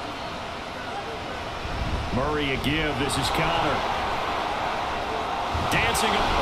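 A stadium crowd roars steadily and grows louder.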